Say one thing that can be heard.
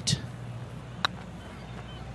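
A putter taps a golf ball softly.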